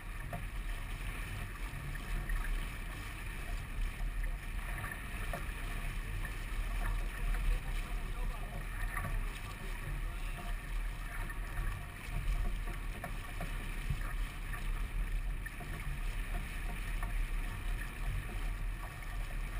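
Water splashes and rushes against a sailboat's hull.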